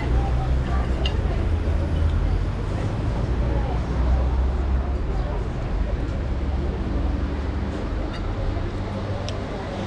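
Metal cutlery clinks and scrapes against a plate.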